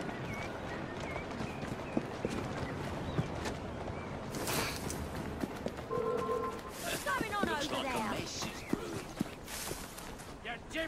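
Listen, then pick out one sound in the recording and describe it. Footsteps run quickly over gravel and grass.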